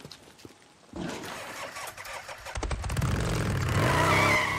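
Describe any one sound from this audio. A motorcycle engine roars as it approaches.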